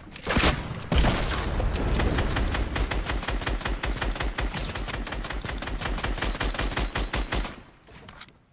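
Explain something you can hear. A rifle fires in rapid bursts of shots.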